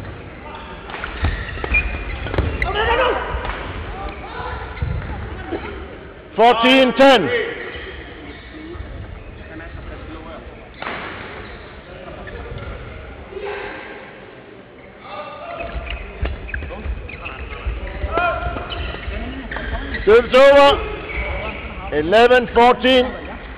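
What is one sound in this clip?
Sports shoes squeak sharply on an indoor court.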